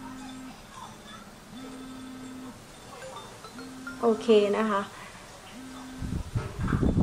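A phone plays a steady ringback tone in repeated bursts through its speaker.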